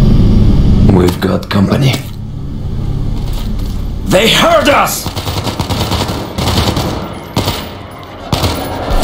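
A rifle fires in quick bursts in an echoing space.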